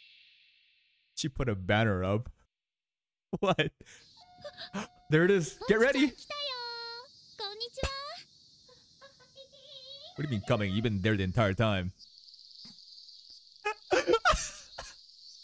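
A young man laughs into a microphone.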